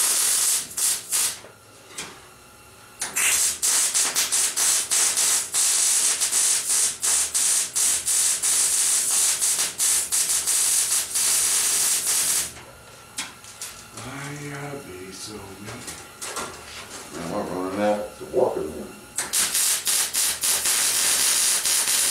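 An arc welder crackles and hisses steadily in bursts.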